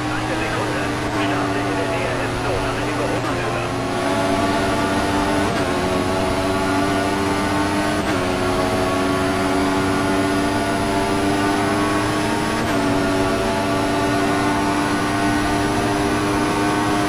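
A racing car engine screams at high revs, dropping briefly with each quick gear change.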